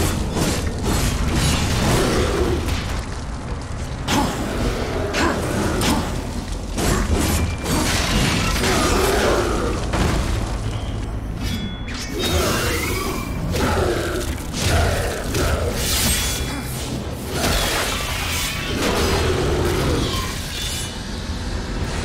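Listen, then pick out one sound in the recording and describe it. Heavy sword blows clang and slash in quick succession.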